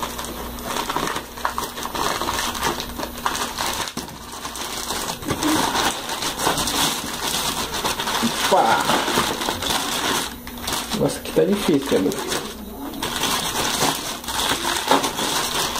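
A plastic bag rustles and crinkles as it is torn open.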